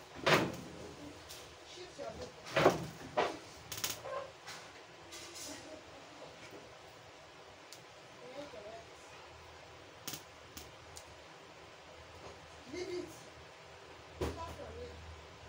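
Plastic hair clips click softly as hair is handled.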